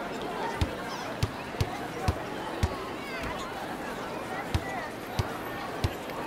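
A basketball bounces on a hard court in a steady dribble.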